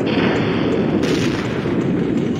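A laser gun fires with sharp electric zaps.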